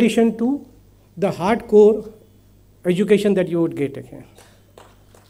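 A man speaks calmly through a loudspeaker in a large hall.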